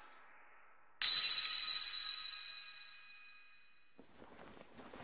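A bright, shimmering magical chime rings out and slowly fades.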